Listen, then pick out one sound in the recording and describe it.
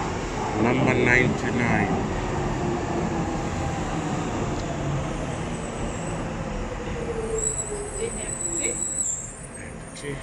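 A light rail train rolls into a station with a falling electric whine and slows to a stop.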